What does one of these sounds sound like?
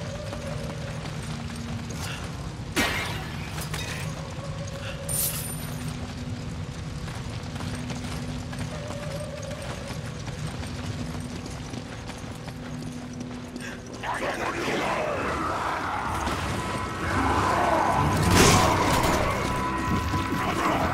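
Footsteps tread on stone and gravel.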